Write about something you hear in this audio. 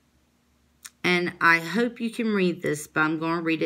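A woman speaks close by, clearly and with animation.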